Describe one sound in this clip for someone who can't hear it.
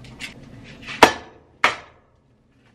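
An egg cracks against a pan's edge.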